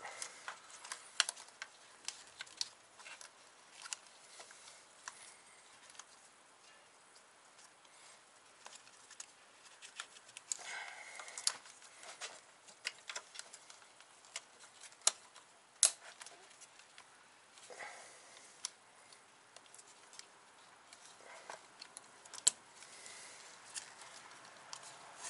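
Metal tools click and clink against engine parts.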